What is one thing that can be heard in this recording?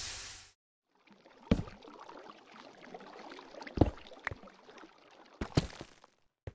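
Water flows with a steady trickling rush.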